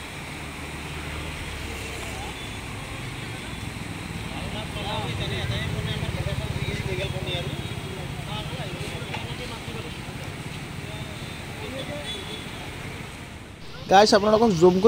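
A swollen river rushes and churns steadily.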